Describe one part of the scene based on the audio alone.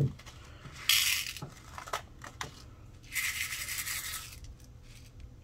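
Small rhinestones rattle and slide in a plastic dish.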